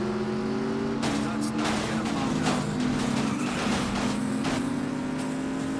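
Car bodies bump and clatter against each other.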